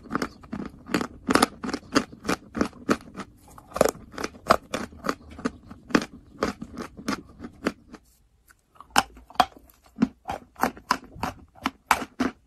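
A woman chews something crunchy close to a microphone.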